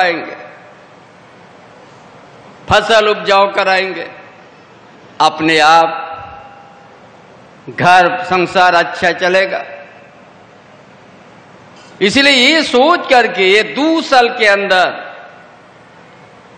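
An elderly man speaks forcefully in short bursts through a loudspeaker, echoing across an open space.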